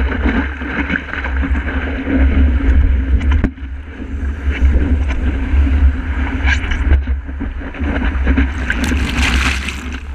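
Wind rumbles hard against a microphone.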